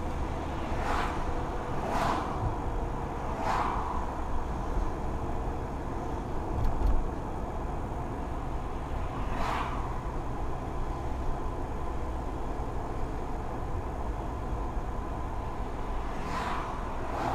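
A car engine hums and its tyres rumble steadily on the road.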